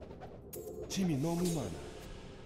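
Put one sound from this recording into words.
A short game sound effect swoops up and down in pitch.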